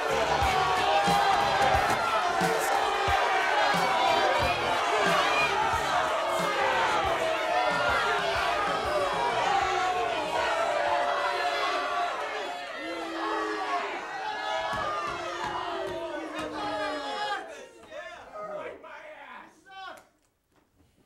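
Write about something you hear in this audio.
Several young men and women shout and talk over one another.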